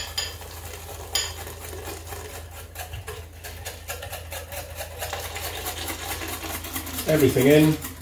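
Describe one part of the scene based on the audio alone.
Liquid pours into a bowl.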